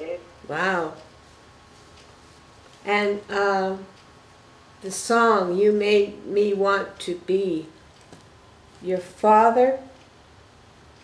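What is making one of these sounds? An elderly woman reads aloud slowly and calmly, close by.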